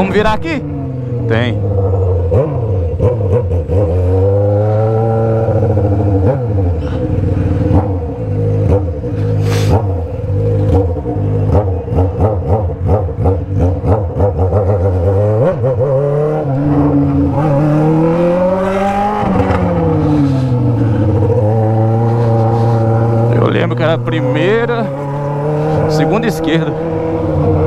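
A Honda Hornet inline-four motorcycle with a straight-through exhaust rides through the streets, revving up and down through the gears.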